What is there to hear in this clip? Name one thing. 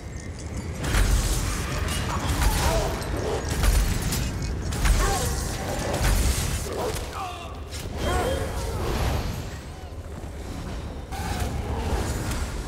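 Magic blasts boom.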